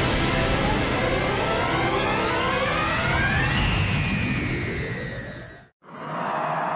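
A roaring burst of energy swells and rises in pitch.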